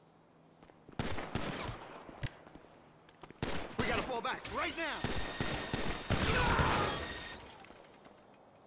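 Gunfire rattles in loud rapid bursts.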